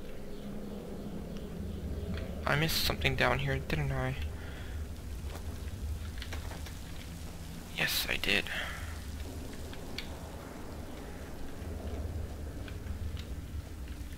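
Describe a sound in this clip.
Footsteps crunch softly on a dirt floor.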